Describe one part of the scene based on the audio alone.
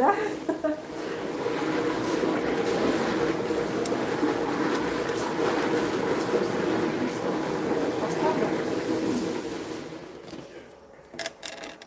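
A middle-aged woman talks cheerfully close by.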